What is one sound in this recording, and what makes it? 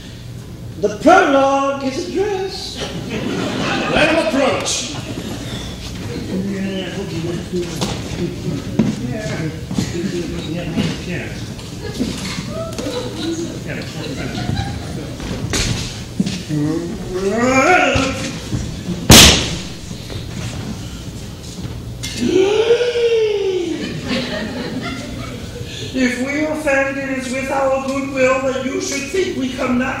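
A man sings on a stage.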